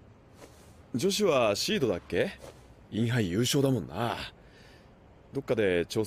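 A young man speaks calmly and close.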